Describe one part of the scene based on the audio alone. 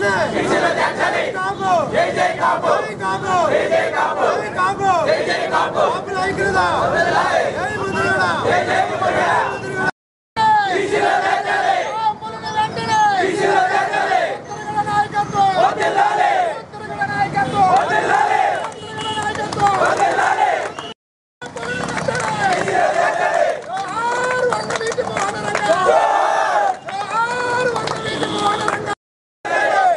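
A crowd of men chants slogans loudly in unison outdoors.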